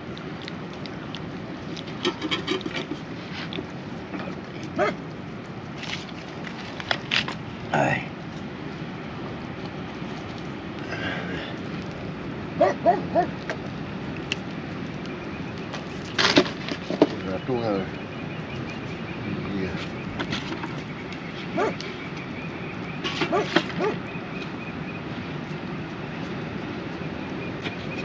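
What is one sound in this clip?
A fire crackles softly nearby.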